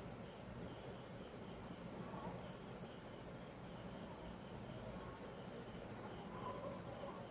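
A metal spatula scrapes softly across frosting.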